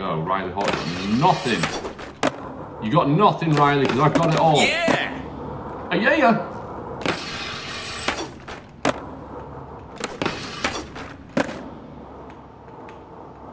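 Skateboard wheels roll and clack on a hard floor.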